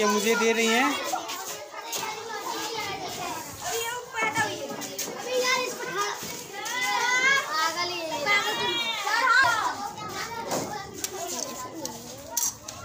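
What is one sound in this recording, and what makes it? Children chatter and laugh nearby.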